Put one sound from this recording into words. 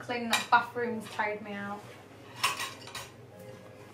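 Dishes clink and clatter in a rack.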